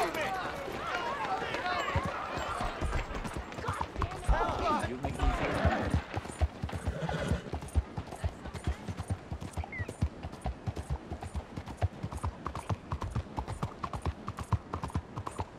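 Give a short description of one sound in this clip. A horse's hooves clop steadily on a street.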